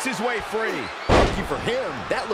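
A body slams hard onto a wrestling mat with a loud thud.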